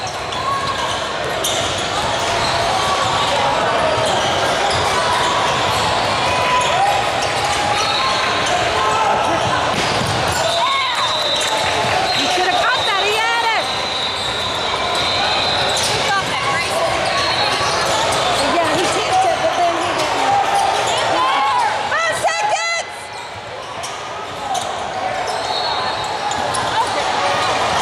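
A crowd of spectators chatters steadily in a large echoing gym.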